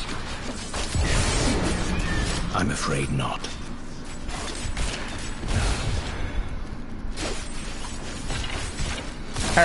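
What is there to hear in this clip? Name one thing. Electric magic crackles and zaps.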